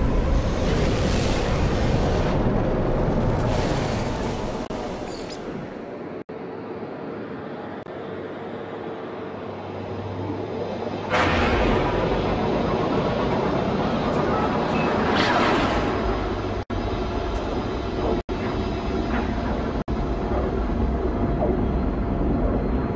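A spaceship engine hums with a deep, steady rumble.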